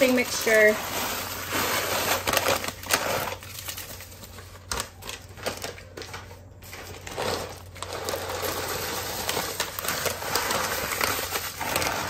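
Dry cracker crumbs pour from a paper bag and patter down.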